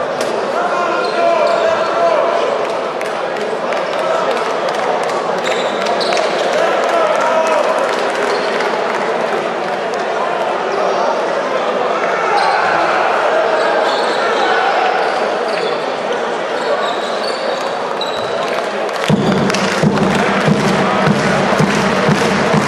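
A crowd murmurs and chatters throughout a large echoing hall.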